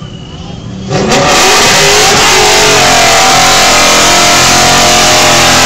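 A car engine roars loudly and revs close by.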